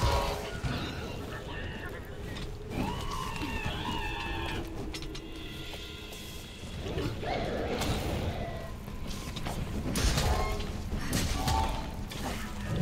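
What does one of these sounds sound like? Heavy blade strikes land with sharp thuds and clangs.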